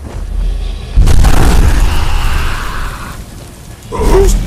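A dragon roars loudly nearby.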